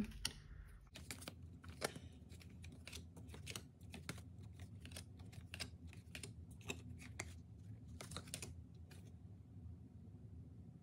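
Playing cards slide and tap softly as a hand handles them.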